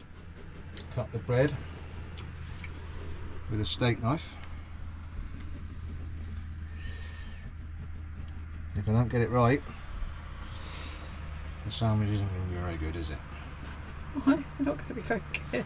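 A man talks calmly close by, in short bursts.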